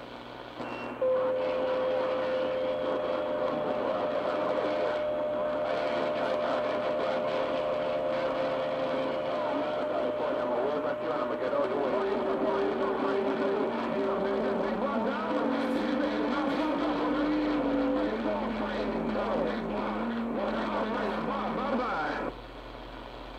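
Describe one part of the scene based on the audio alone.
A radio loudspeaker crackles with a noisy, hissing transmission.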